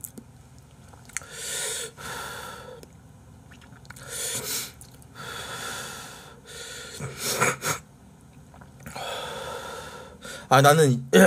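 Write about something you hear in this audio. A young man slurps noodles loudly into a microphone.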